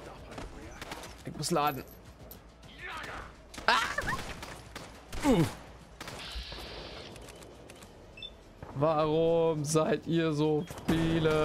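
Gunshots fire in quick bursts with loud bangs.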